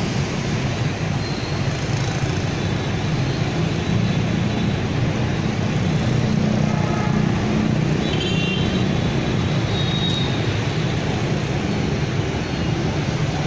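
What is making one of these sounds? Heavy traffic of motorbikes and cars rumbles steadily past.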